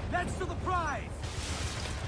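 Cannons fire with deep booms.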